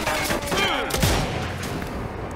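A rifle shot rings out.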